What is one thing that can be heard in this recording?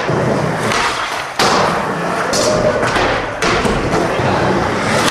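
Skateboard wheels roll across a ramp.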